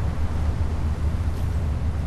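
Waves wash against a ship's hull.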